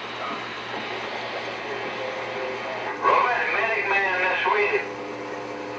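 A radio hisses with steady static through its loudspeaker.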